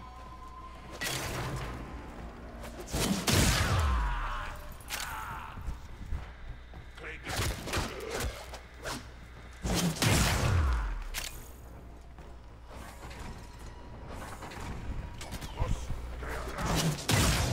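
A blade whooshes through the air and strikes with sharp, heavy impacts.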